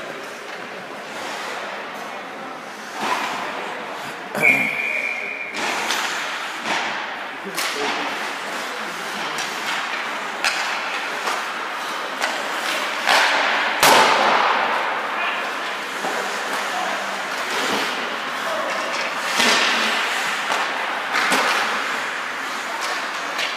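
The sounds echo in a large, hard-walled arena.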